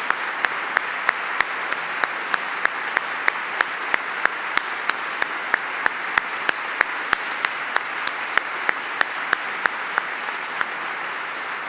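A woman claps her hands close by in a steady rhythm.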